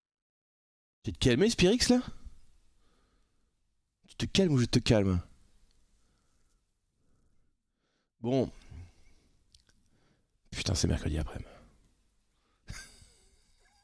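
A man speaks with animation into a close microphone in short bursts.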